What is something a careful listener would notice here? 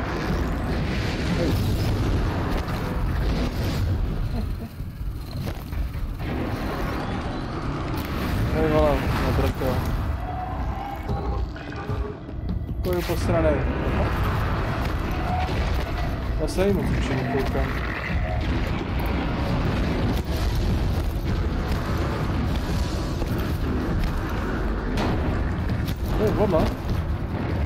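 Explosions boom and roar in a video game.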